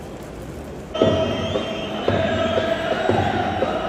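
A crowd of fans chants and sings loudly together.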